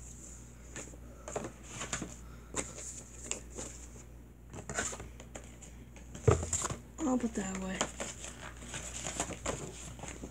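Paper rustles and crinkles as a boy handles it.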